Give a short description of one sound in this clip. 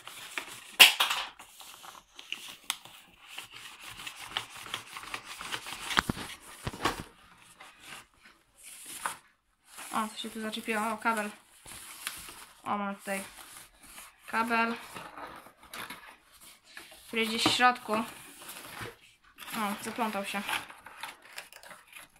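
Plastic wrapping crinkles and rustles as hands unwrap a package.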